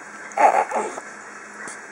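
A baby giggles and squeals happily up close.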